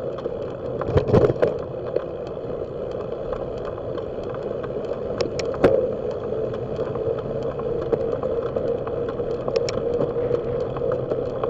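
Wind buffets past the vehicle.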